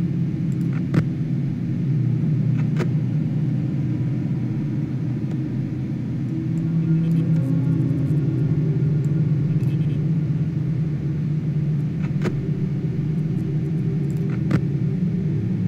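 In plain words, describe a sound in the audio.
Sharp clicks sound now and then.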